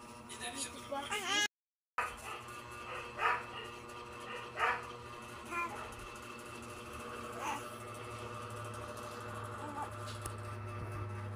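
A baby babbles and coos up close.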